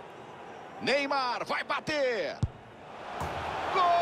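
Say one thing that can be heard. A football is kicked with a thud.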